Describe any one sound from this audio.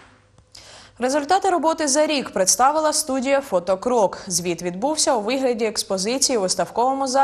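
A middle-aged woman speaks calmly and clearly into a microphone.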